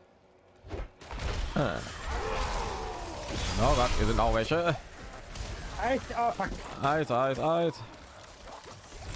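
Magic spells crackle and blast during a fight.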